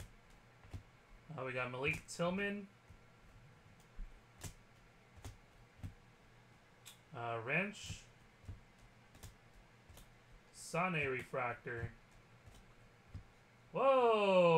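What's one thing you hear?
Trading cards rustle and flick softly between hands.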